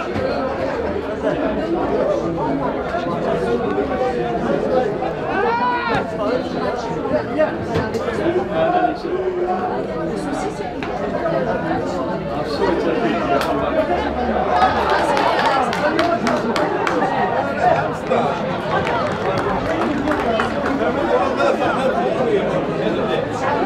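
A crowd of spectators murmurs and cheers outdoors.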